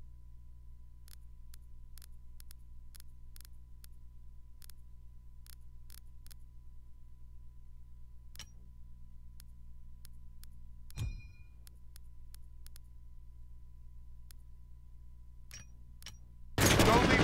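Soft menu clicks tick as options are selected.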